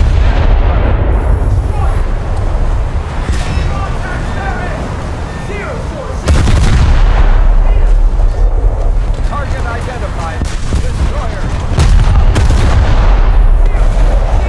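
Distant shells explode with dull thuds.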